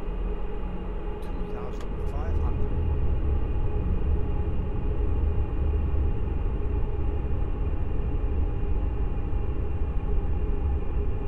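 Jet engines roar steadily in a cockpit.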